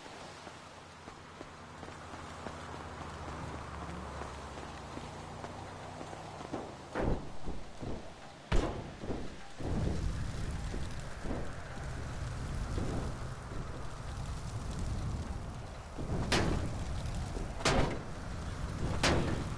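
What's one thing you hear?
A large truck engine rumbles.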